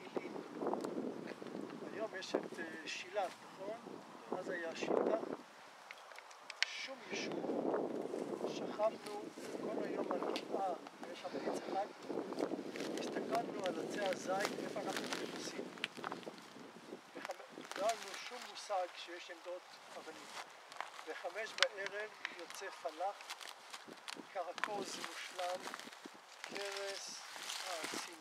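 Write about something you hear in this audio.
An elderly man talks calmly and explains, nearby outdoors.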